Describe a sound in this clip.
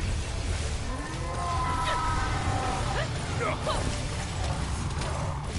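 Video game combat effects whoosh and chime over steady game music.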